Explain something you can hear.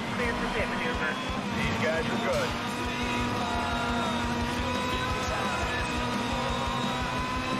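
An open-wheel racing car's engine roars at high speed.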